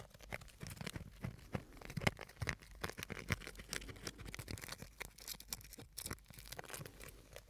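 Fingers tap and scratch on a small object close to a microphone.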